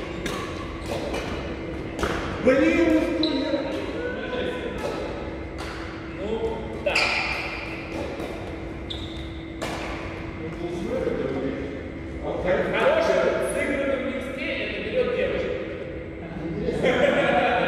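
Shuttlecocks pop off badminton rackets with sharp, echoing smacks.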